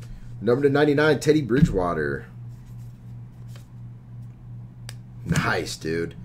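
Trading cards shuffle and slide against each other.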